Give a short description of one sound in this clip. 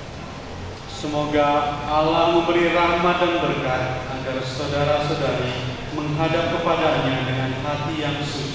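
A man speaks through a microphone, chanting in a steady, prayer-like voice that echoes in a large hall.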